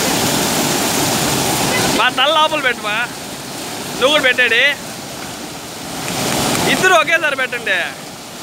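Water rushes and splashes loudly close by.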